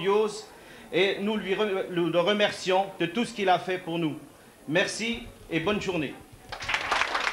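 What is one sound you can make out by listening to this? A middle-aged man speaks into a microphone to a crowd.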